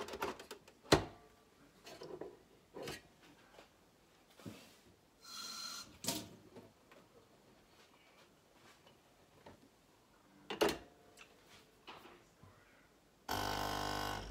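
A coffee machine's lever clicks shut.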